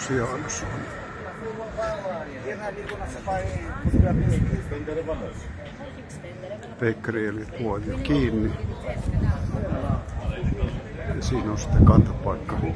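Men and women talk in a lively crowd outdoors, close by and farther off.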